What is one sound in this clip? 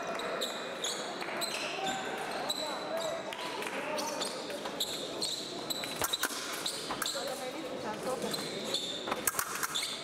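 Fencing blades click and clash together in quick bursts.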